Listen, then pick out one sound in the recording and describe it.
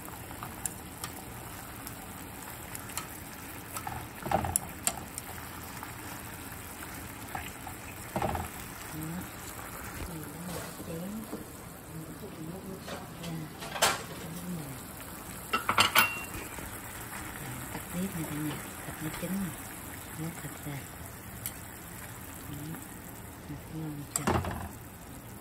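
Chopsticks tap and scrape against a metal pan.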